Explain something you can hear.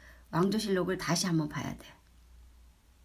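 An elderly woman speaks calmly and close up.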